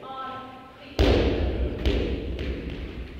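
A heavy thump lands on a floor nearby, twice in quick succession.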